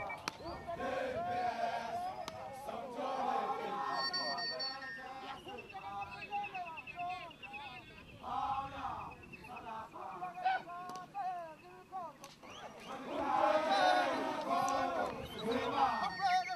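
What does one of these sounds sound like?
A large crowd of men sings and chants loudly outdoors.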